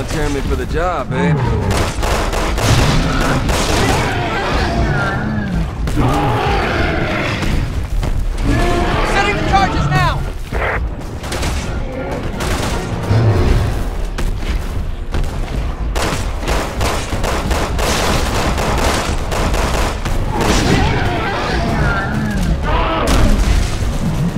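Gunshots fire rapidly, one after another.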